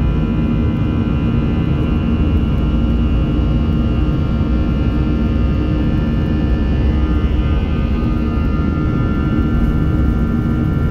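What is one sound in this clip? Airplane wheels rumble along the runway.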